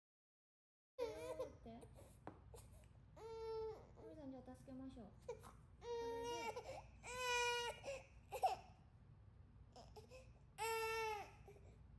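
A baby cries loudly in wailing bursts close by.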